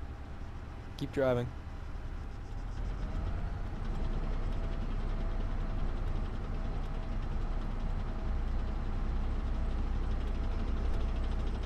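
A tank engine rumbles low and steady as the tank drives along.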